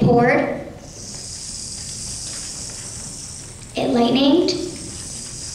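A young girl speaks loudly from a stage in an echoing hall.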